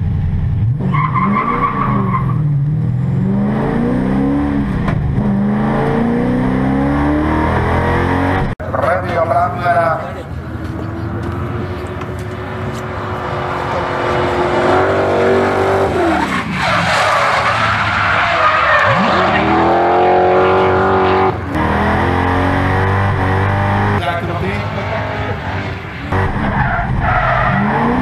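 A car engine revs hard, rising and falling in pitch.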